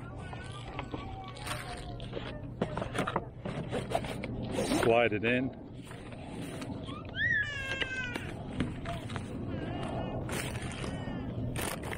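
Paper and cardboard packaging rustles and crinkles in a man's hands.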